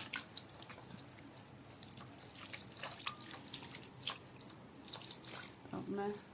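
Water drips and splashes into a metal basin.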